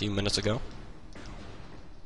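A gun fires a loud blast.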